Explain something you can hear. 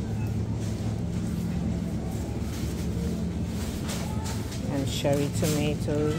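Refrigerated shelves hum steadily and low.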